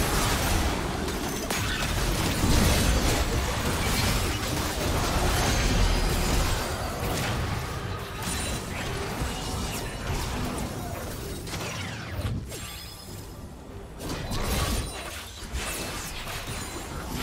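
Spell effects blast and crackle in a fast-paced fight.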